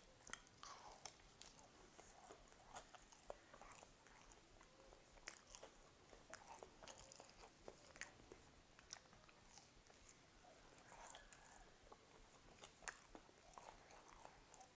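A man crunches and chews crisp food close to a microphone.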